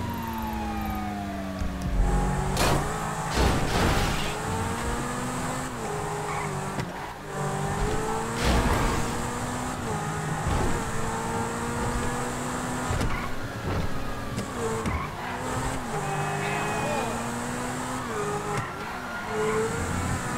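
A sports car engine roars and revs up and down through gear changes.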